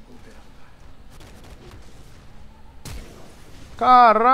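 Spell effects crackle and thud during a fight in a video game.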